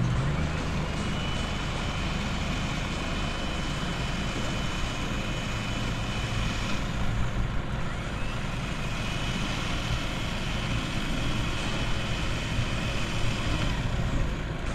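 An electric winch whirs steadily.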